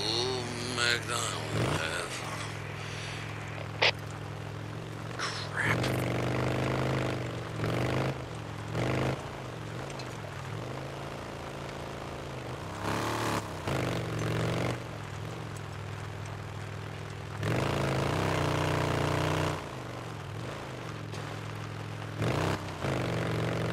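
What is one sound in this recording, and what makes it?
A motorcycle engine hums steadily and revs up in loud surges.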